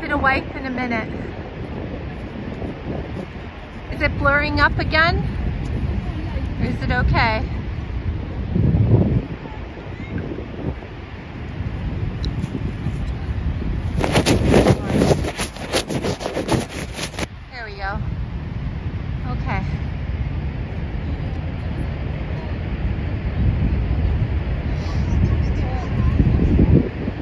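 Strong wind gusts and rumbles outdoors.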